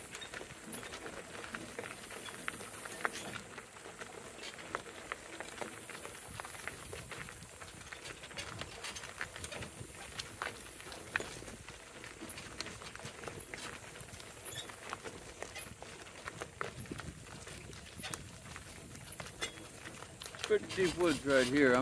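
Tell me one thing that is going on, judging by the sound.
Donkey hooves clop steadily on a gravel road.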